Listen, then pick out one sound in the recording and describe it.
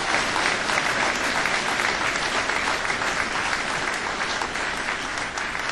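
A banjo plays a fast, bright picked tune through a microphone.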